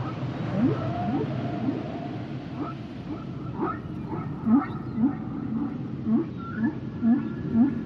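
Dolphins whistle and chirp underwater, in short rising calls.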